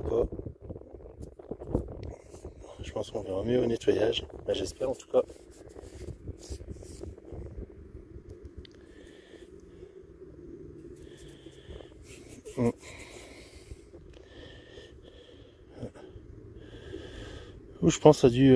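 Fingers rub dirt from a small coin.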